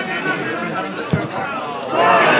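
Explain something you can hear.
A football is struck hard with a thud.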